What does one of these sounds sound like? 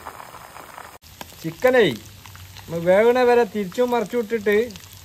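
A spatula scrapes and stirs in a frying pan.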